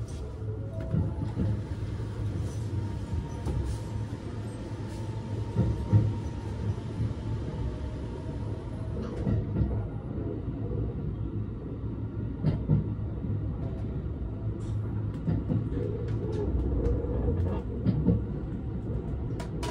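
Train wheels knock over rail joints.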